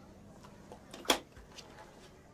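A plastic lid snaps onto a cup.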